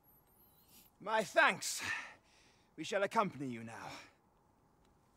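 A man speaks firmly and clearly, close by.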